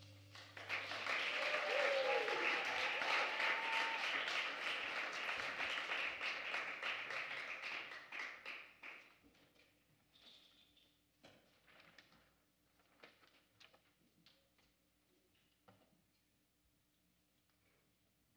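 A piano plays softly.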